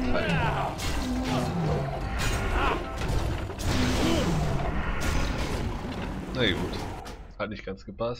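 Weapons clash and spells burst loudly in a fight.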